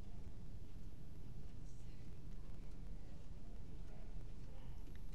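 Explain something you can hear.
A woman's footsteps pad softly on carpet.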